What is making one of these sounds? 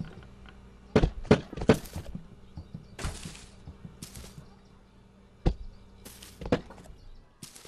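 A cardboard box thuds down onto the ground.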